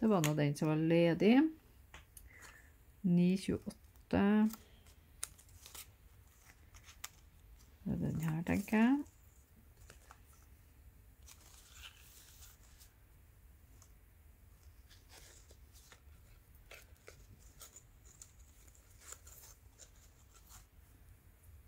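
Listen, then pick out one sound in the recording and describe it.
Cardboard thread cards click and rustle softly as hands sort through them.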